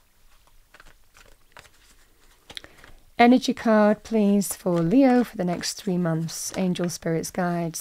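Playing cards rustle softly as they are shuffled by hand.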